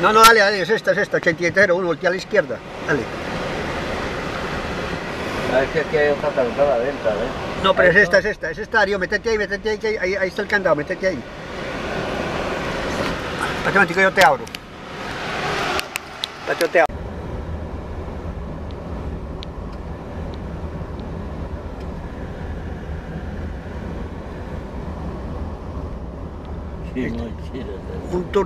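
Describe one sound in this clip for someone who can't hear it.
A car hums steadily along a road, heard from inside.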